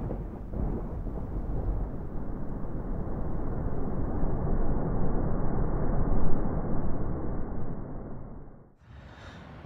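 Waves crash against rocks and surge with a steady roar.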